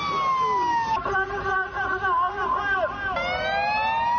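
A man shouts through a megaphone.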